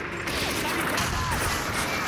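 A tank's cannon fires with a heavy boom.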